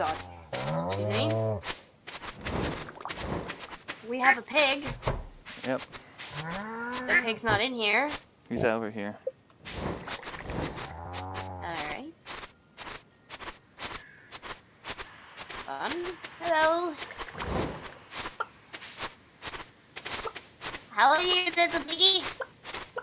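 A scythe swishes through tall grass again and again.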